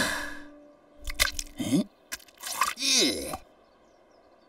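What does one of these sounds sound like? A cartoon sheep bleats and mutters in short bursts.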